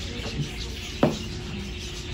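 A feeding scoop knocks against a metal fence.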